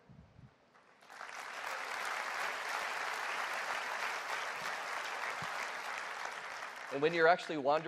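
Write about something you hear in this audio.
A large audience applauds and cheers.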